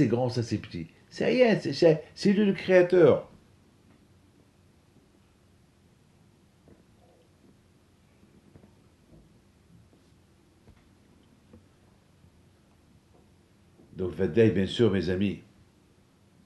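An elderly man speaks calmly and close by, in short bursts.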